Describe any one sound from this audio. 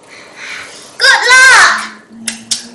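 A young boy shouts with excitement.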